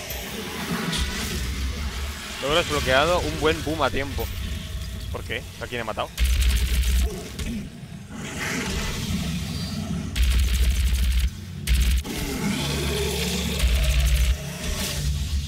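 A gun fires heavy, booming blasts.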